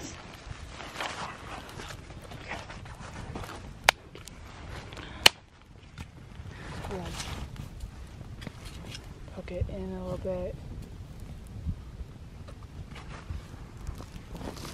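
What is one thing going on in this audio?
A small fire of dry twigs crackles and pops.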